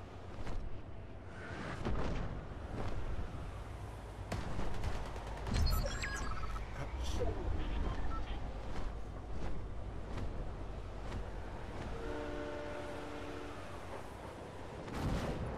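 Wind rushes steadily during a glide.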